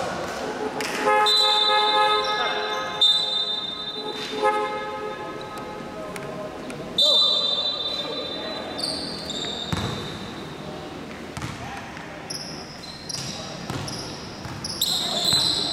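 Sneakers squeak sharply on a wooden floor in an echoing hall.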